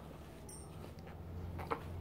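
A dog howls.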